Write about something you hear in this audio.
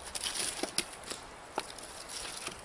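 Charred wood and ash crunch and scrape.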